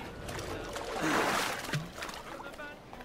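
Water splashes as someone wades through shallows.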